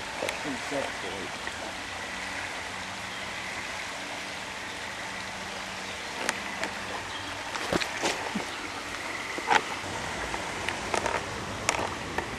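A river flows steadily outdoors.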